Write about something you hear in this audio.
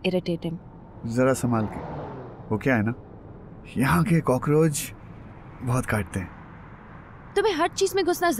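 A young man speaks softly nearby.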